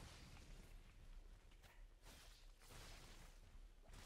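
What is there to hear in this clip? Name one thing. A sword swings and strikes in a fight.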